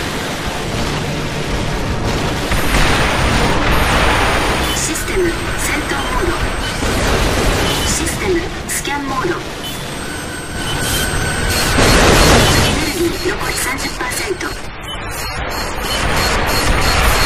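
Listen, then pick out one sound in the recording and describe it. Mech thrusters roar steadily.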